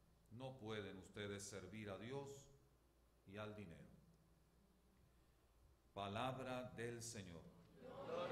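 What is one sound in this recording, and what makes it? A man speaks slowly and solemnly into a microphone, in a room with a slight echo.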